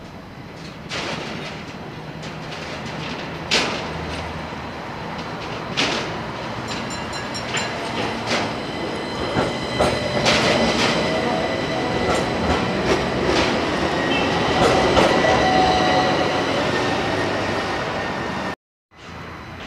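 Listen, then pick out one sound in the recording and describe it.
An electric tram approaches and passes close by.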